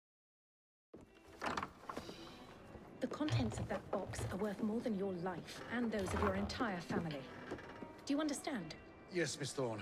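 A woman speaks sternly and close by.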